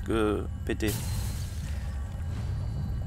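A burst of energy crackles and fizzes.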